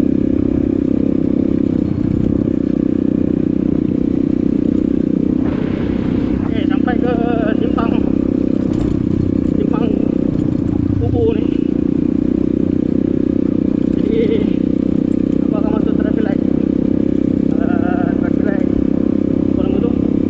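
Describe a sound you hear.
Tyres crunch over a rough gravel road.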